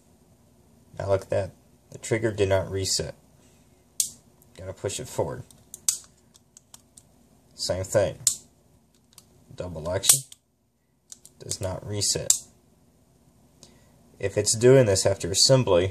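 Metal parts of a revolver click as they are handled.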